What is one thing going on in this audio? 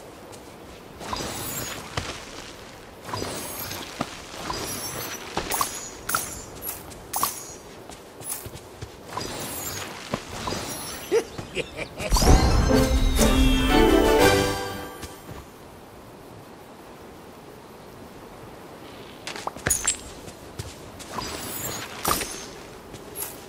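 Rocks crack and shatter with sparkling chimes.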